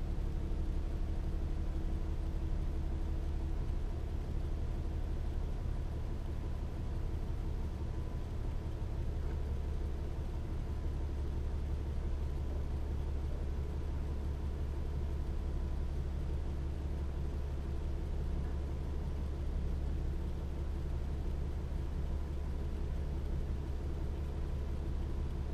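A car engine idles with a steady low hum.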